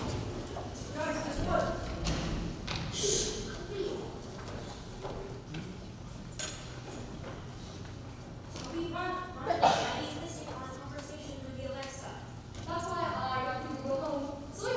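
A young woman speaks loudly on stage.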